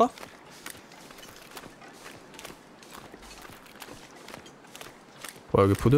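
Footsteps crunch on icy snow at a steady pace.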